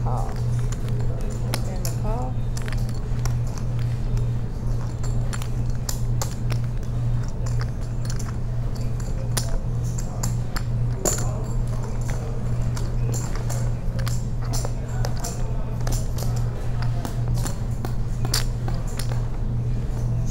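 Poker chips click and clatter on a table.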